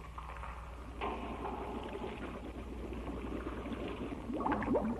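A metal tool scrapes against a boat hull underwater.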